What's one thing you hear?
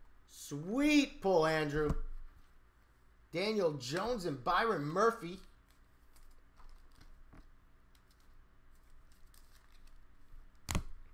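Trading cards rustle and slide in hands.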